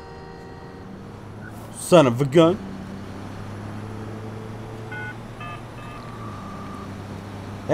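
A truck engine rumbles steadily as the truck drives off.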